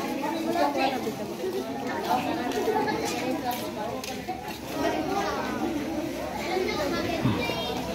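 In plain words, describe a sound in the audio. Women and children chatter nearby outdoors.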